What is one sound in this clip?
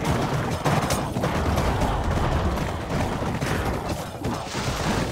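A crowd of game creatures fights noisily with a dense clatter of hits and thuds.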